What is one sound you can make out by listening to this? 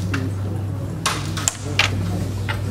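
A striker cracks into a cluster of carrom pieces, scattering them with a sharp clack.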